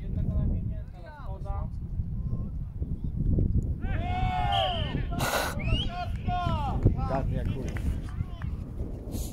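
Young men shout to each other from across an open field.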